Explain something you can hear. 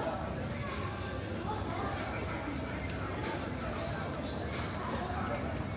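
A low rumble of crowd murmur fills a large echoing hall.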